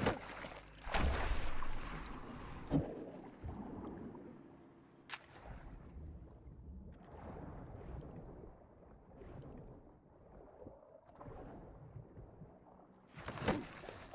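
Bubbles gurgle and rush underwater.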